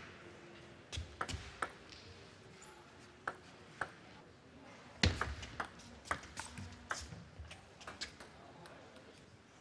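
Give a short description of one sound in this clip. A ping-pong ball clicks back and forth off paddles and the table.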